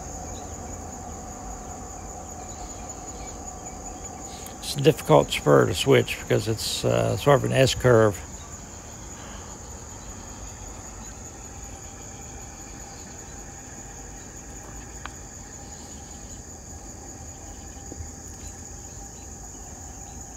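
A small model train hums softly along its track.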